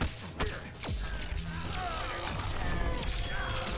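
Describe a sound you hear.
Heavy punches and blows land with loud thuds.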